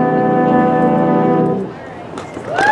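A brass band holds a loud chord, then breaks off.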